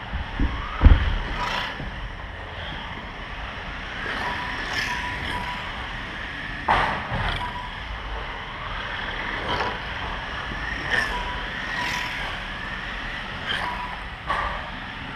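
Small electric model cars whine past, their motors rising and falling.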